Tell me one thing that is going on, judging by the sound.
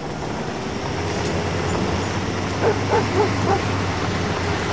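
A pickup truck's engine rumbles as it drives slowly closer.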